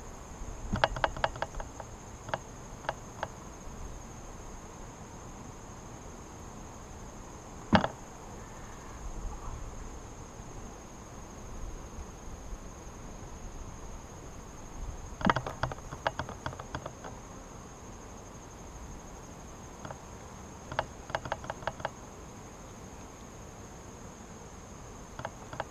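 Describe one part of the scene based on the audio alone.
Bees buzz steadily around an open hive outdoors.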